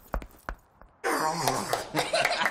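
A child squeals and laughs loudly.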